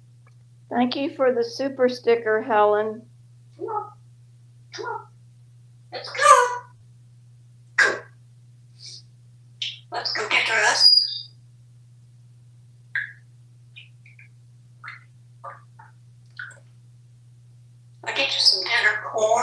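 A parrot chatters, squawks and whistles in short bursts up close.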